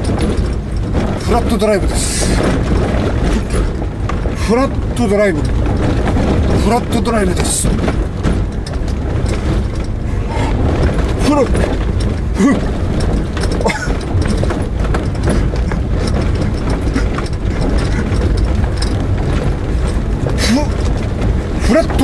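A car engine rumbles steadily inside a moving car.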